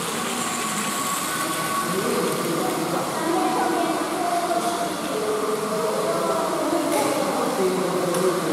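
A battery toy train whirs and rattles along plastic track.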